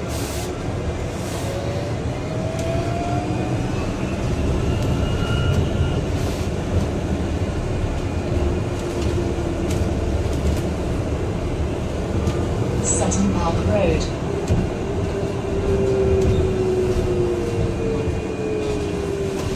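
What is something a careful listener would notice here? A bus engine rumbles low and steady while the bus drives.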